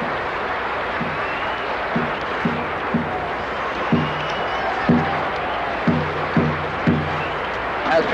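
A marching band plays short, deep brass notes.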